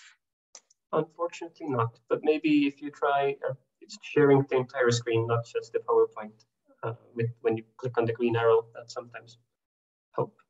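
A man speaks steadily over an online call.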